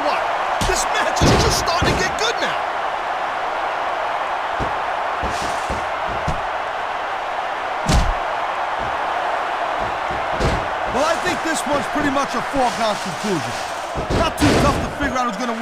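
A crowd roars steadily in a large arena.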